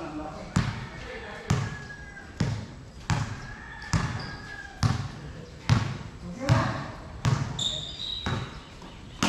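A basketball bounces on a hard court in a steady rhythm.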